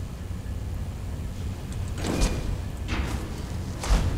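A metal gate rattles open.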